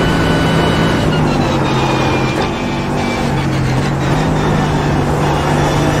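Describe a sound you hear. A racing car engine blips and drops in pitch as the gears shift down.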